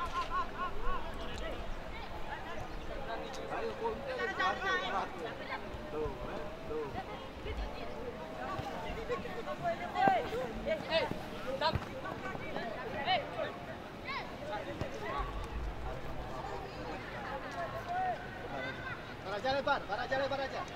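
Young players shout and call to each other outdoors across an open field.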